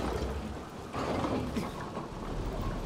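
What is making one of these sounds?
Hands grab a metal bar with a clank.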